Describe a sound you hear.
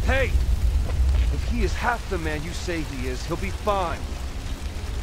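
A young man speaks firmly and reassuringly, close by.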